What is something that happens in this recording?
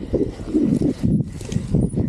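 Ferns brush and swish against a bicycle.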